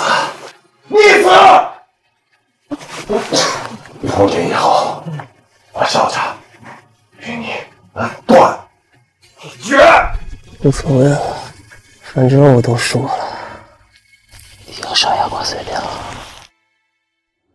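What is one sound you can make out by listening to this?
A young man speaks weakly and hoarsely, close by.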